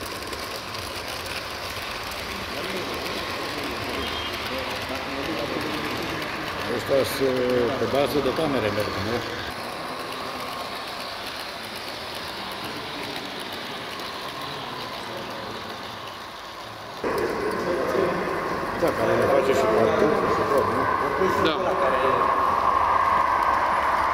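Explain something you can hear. A model train rumbles and whirs steadily along its track.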